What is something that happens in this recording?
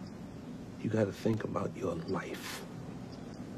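A young man speaks quietly.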